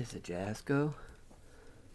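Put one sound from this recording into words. Cloth rustles softly as a hand handles it.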